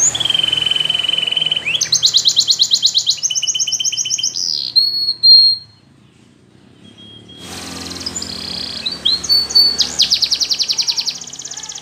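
A canary sings loud, rapid trills and whistles close by.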